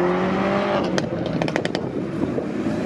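An exhaust pops and crackles sharply.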